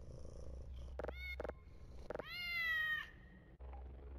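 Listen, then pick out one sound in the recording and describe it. A cat meows loudly.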